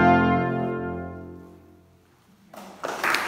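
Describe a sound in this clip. A brass ensemble plays a final held chord that rings out in an echoing hall.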